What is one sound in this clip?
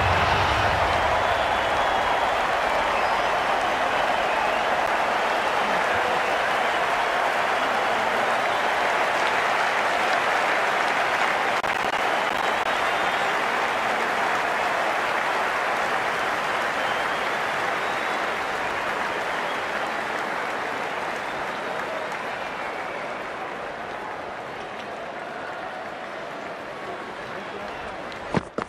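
A large crowd cheers and roars steadily, slowly fading.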